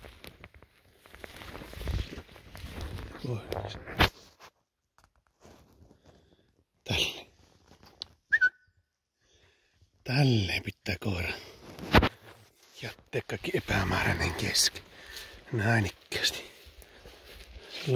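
A man talks quietly and close by.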